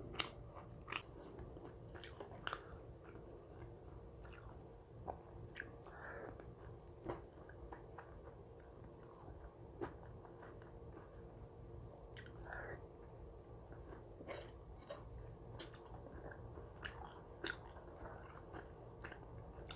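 A spoon clinks and scrapes against a bowl.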